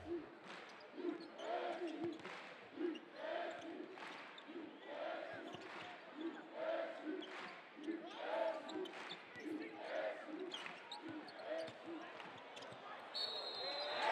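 A large crowd chants in a steady rhythm in an echoing arena.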